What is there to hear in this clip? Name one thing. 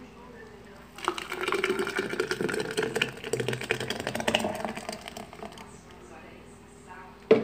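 A thick liquid pours and splashes into a glass jar.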